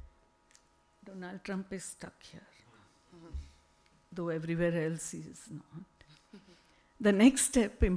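A woman speaks calmly into a microphone over a loudspeaker.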